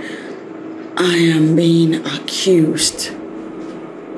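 A woman speaks sharply and tensely, close by.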